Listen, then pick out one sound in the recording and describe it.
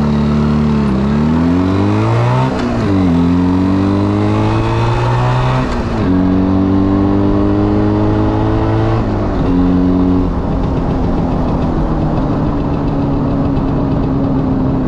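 A small motorcycle engine buzzes loudly, revving up through the gears and dropping as it shifts.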